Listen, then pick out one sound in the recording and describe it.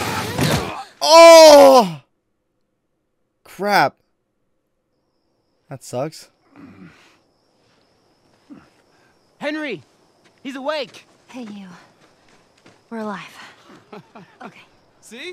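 A young man cries out and talks in short bursts through a headset microphone.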